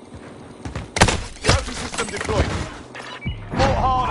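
Gunshots crack loudly in quick bursts.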